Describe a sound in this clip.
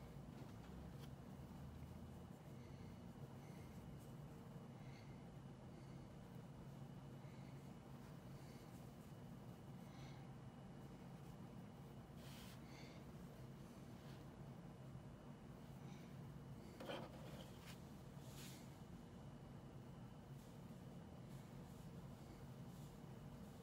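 Fabric rustles softly as hands handle a small stuffed toy.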